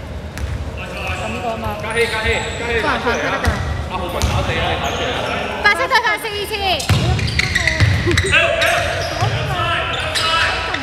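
Sneakers squeak sharply.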